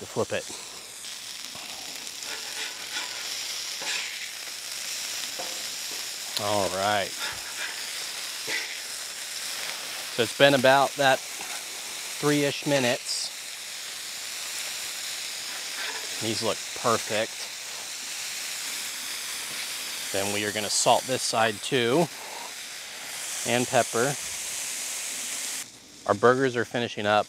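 A man talks calmly and clearly into a close microphone.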